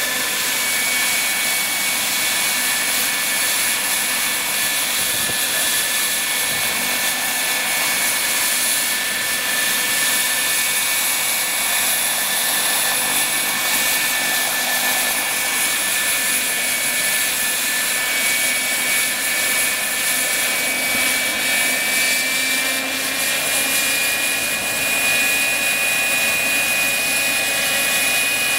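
A model helicopter's small engine whines steadily at high pitch.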